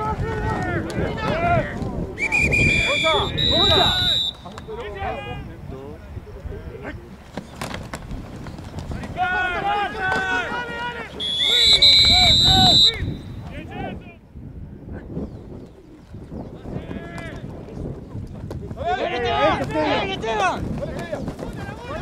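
Football players' helmets and pads thud together in tackles.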